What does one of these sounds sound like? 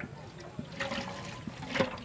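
Oil pours in a thin stream into a metal pot.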